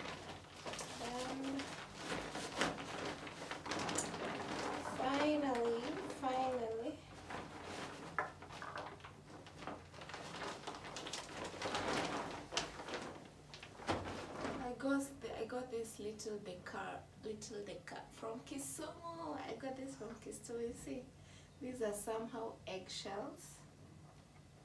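A young woman talks cheerfully and close by.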